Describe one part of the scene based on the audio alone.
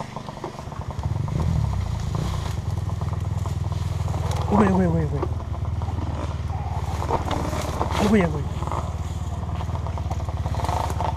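A motorcycle engine idles close by with a low steady rumble.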